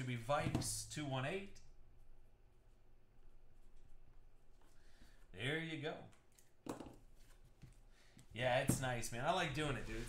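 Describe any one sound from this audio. Trading cards rustle and tap against a tabletop.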